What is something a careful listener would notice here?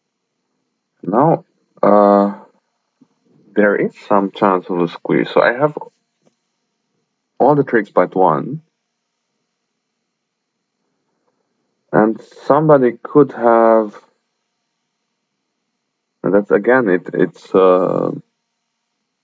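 A young man speaks calmly into a microphone in short bursts.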